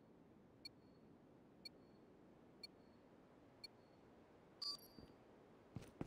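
Short electronic beeps count down once a second, then a higher tone sounds.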